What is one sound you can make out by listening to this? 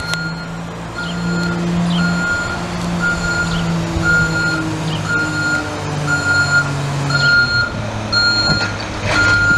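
A garbage truck's reverse alarm beeps steadily.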